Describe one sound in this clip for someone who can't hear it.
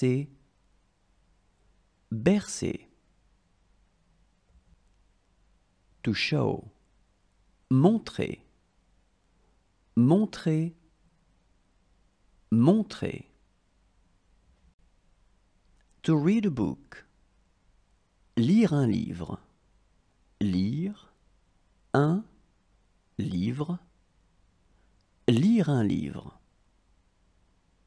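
A young woman speaks single words clearly and slowly, pausing between them.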